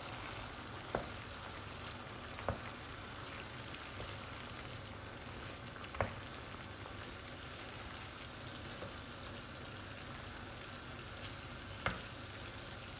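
A wooden spoon knocks and scrapes against a pan.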